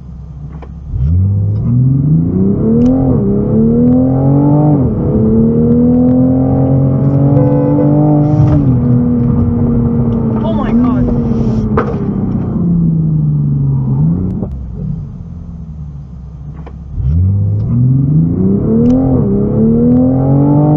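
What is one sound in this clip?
A car engine revs hard and climbs through the gears, heard from inside the car.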